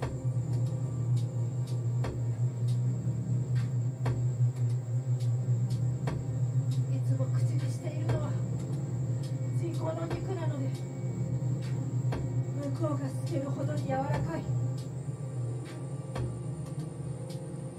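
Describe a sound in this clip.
A steady electronic synthesizer drone plays loudly through speakers.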